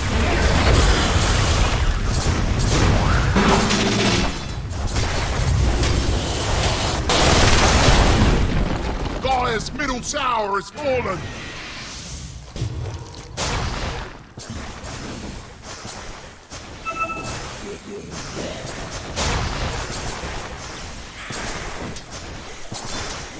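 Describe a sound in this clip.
Game sword strikes clash repeatedly.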